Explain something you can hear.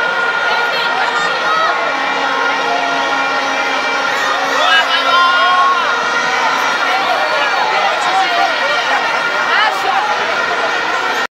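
A large crowd of fans cheers and shouts excitedly outdoors.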